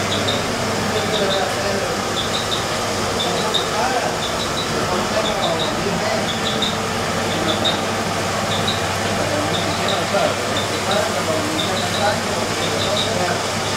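An electric motor hums steadily.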